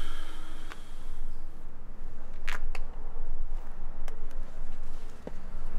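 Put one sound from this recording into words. Footsteps walk slowly on pavement.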